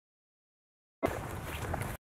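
Bare feet patter quickly on pavement.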